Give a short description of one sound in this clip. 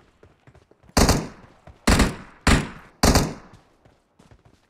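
Four loud gunshots ring out with a sharp echo.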